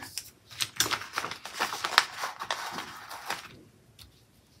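Paper rustles as a sticker is peeled from its backing.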